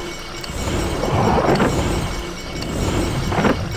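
A shimmering magical whoosh swells up.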